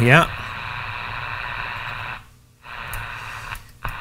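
A knob clicks as it is turned.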